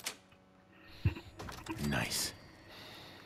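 A door creaks open.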